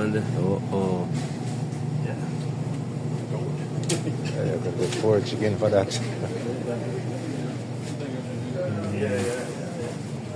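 Refrigerated display cases hum steadily nearby.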